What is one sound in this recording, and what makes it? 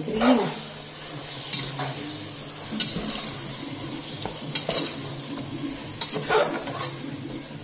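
A metal spoon stirs and clinks against a metal pot.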